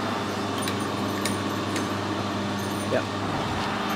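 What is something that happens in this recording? Metal tools click and tap lightly.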